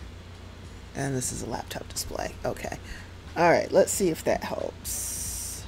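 A young woman speaks with animation through a headset microphone.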